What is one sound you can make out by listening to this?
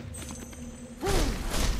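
A bright magical chime rings out.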